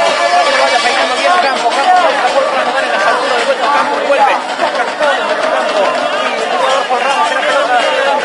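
A large crowd of fans chants and sings loudly in an open stadium.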